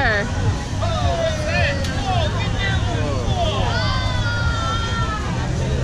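A crowd of children and adults cheers and shouts outdoors.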